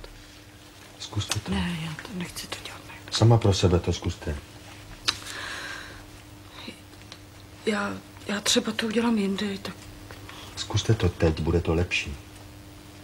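A man speaks firmly, close by.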